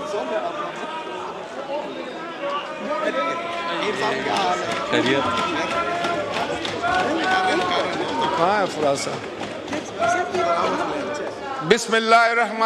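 Many voices murmur and chatter in a large echoing hall.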